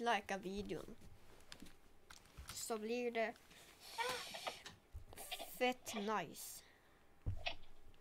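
A young girl speaks with animation close to a microphone.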